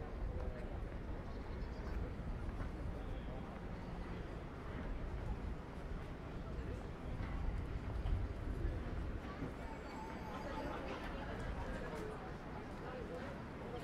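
A crowd of people murmurs in the distance.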